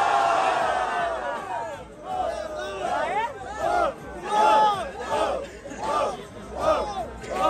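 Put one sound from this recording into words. A crowd of young people cheers and shouts.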